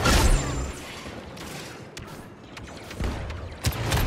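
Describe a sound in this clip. A lightsaber hums and swooshes.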